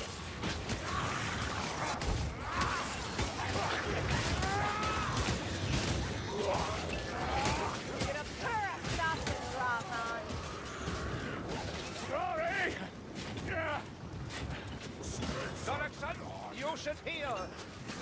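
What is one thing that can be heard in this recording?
Blades hack and strike repeatedly in a fierce fight.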